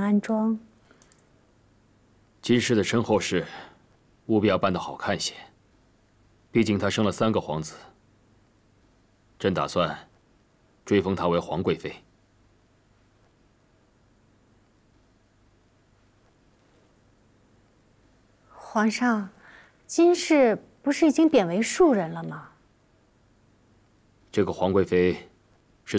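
A man speaks calmly and firmly, close by.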